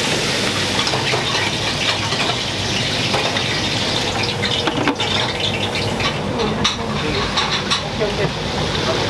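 Meat patties sizzle loudly in hot fat.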